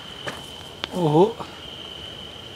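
A man speaks briefly up close.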